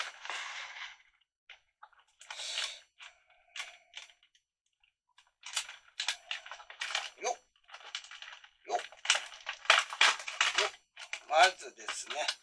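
Small cardboard pieces tap and scrape against a cardboard board.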